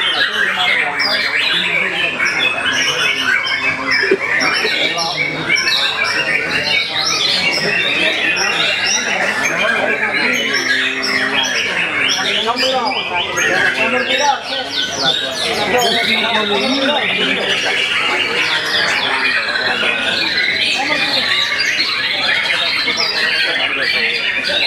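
Other caged birds chirp and twitter nearby.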